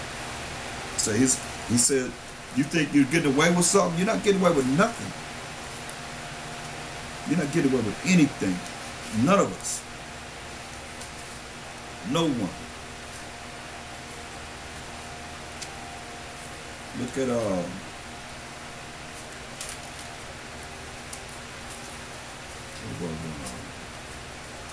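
An elderly man speaks slowly in short bursts with long pauses, close to a microphone.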